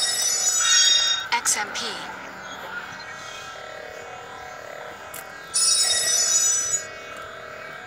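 An electronic game effect chimes in a bright, shimmering burst.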